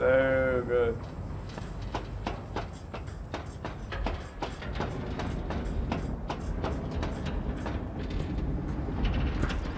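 Boots clank on metal ladder rungs in a quick, steady rhythm.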